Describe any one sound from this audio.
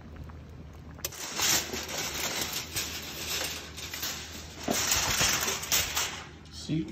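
Aluminium foil crinkles and rustles as it is pulled back.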